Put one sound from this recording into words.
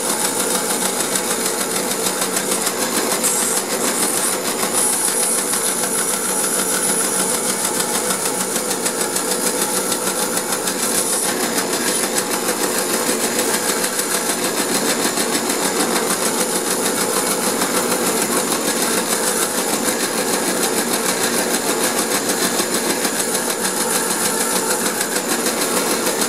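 A band saw runs steadily and cuts through wood.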